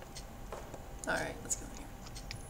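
A young woman speaks briefly and quietly, close to a microphone.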